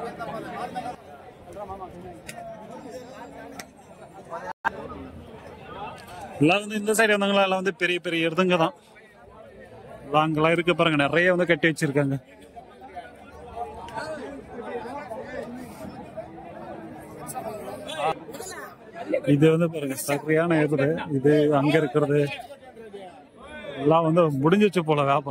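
A crowd of men chatters in the background outdoors.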